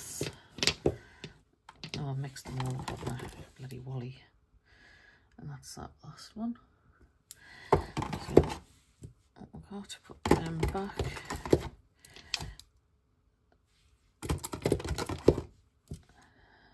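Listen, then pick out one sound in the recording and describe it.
Small plastic bottles tap and click as they are handled.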